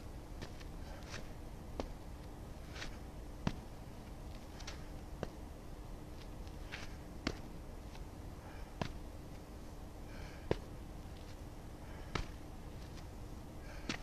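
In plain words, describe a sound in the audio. Shoes tap and scuff on hard ground nearby, again and again.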